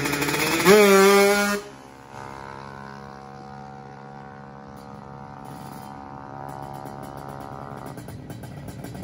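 A motorbike engine roars as it speeds off and fades into the distance.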